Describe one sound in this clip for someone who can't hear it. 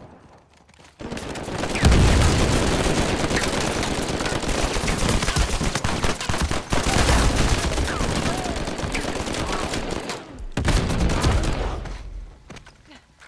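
Rapid gunfire crackles loudly in bursts.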